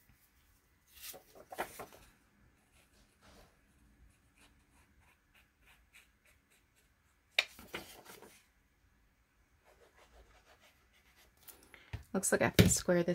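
Paper rustles as a card is picked up and handled.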